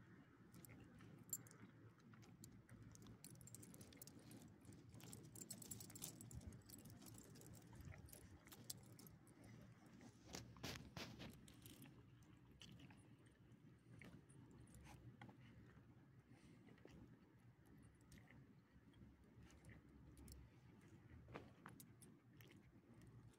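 Small dogs sniff and shuffle on gravel.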